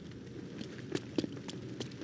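A fire crackles in a barrel.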